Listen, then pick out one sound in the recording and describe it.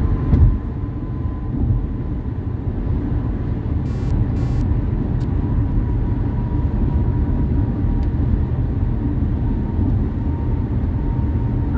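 Tyres rumble low on the road, heard from inside a car.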